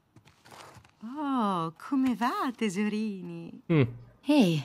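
A woman speaks warmly and cheerfully.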